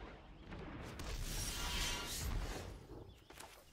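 A magical shimmering whoosh rises and fades.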